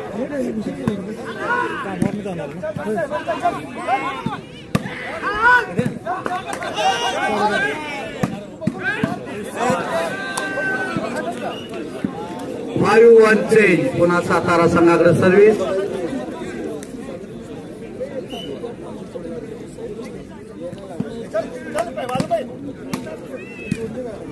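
A crowd of men chatters and cheers in the background.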